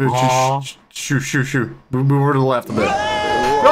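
A young man speaks excitedly into a microphone.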